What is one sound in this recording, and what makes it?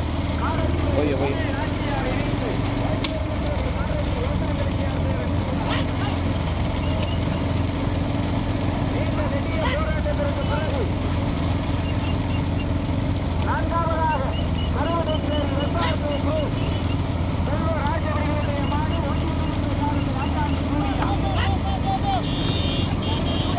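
Cart wheels rattle and roll on the road.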